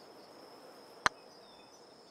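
A putter taps a golf ball with a short, crisp click.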